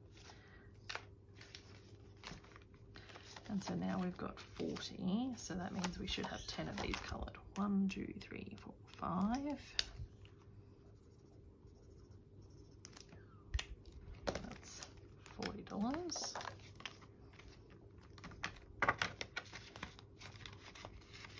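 Paper banknotes rustle and crinkle.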